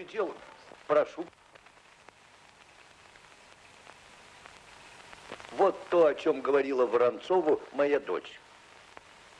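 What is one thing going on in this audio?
A man speaks in a calm, low voice.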